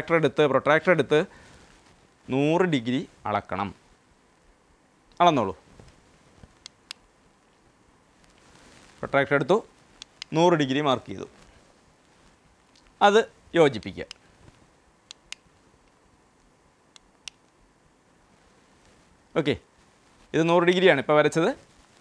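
A man speaks calmly and clearly into a microphone, explaining in pauses.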